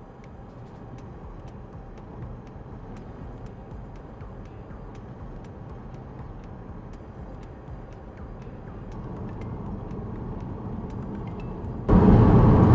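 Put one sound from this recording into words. A car drives along an asphalt road, with a low rumble of road noise heard from inside.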